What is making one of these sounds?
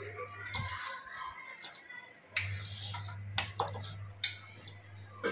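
A metal ladle scrapes and clinks against a metal pan.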